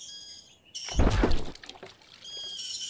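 Water splashes as a bucket drops into a well.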